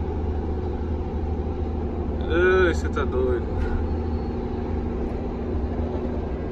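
A vehicle engine rumbles steadily from inside while driving on a road.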